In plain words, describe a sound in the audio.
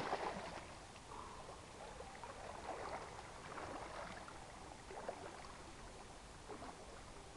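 Water splashes with a swimmer's strokes.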